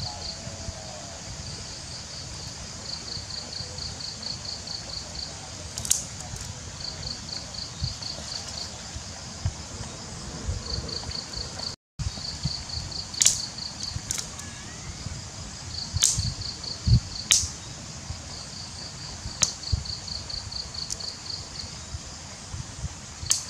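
A small fire crackles and pops.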